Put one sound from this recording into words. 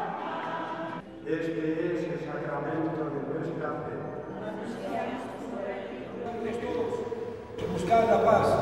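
An elderly man speaks through a microphone in a large echoing church.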